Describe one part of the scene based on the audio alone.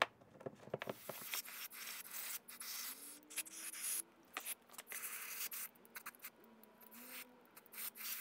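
An aerosol can sprays in hissing bursts.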